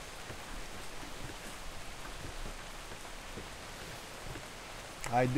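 Waves wash against a wooden ship's hull.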